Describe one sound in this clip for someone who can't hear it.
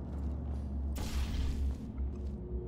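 A sci-fi gun fires with a short electric whoosh.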